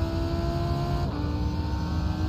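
A racing car's gearbox shifts up with a brief drop in engine pitch.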